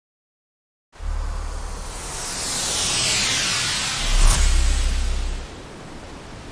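Sparkling energy swirls and crackles, then fades.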